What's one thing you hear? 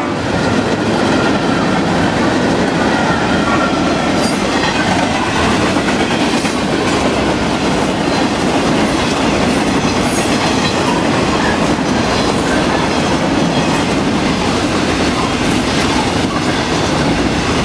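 A long freight train rumbles steadily past on the tracks.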